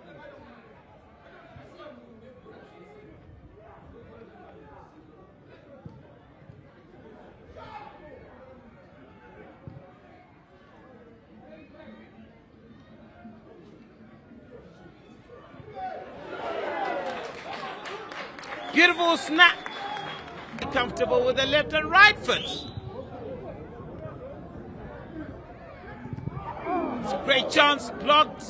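A crowd murmurs and calls out across an open stadium.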